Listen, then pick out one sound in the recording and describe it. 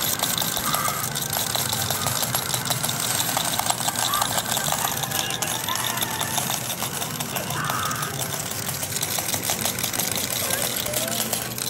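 Coins clatter and clink in an arcade pusher machine.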